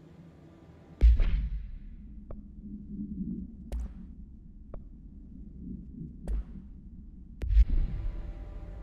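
Menu clicks and whooshes sound as a game menu opens and closes.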